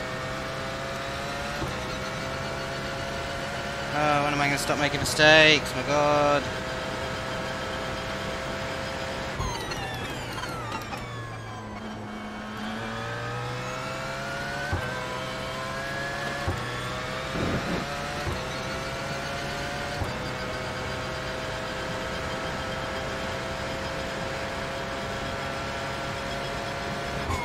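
A racing car engine whines loudly at high revs, climbing in pitch through the gears.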